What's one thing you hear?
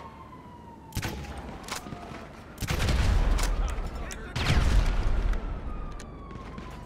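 Loud gunshots boom and echo.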